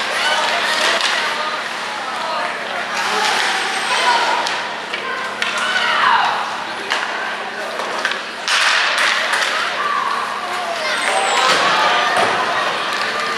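Spectators shout and cheer in an echoing arena.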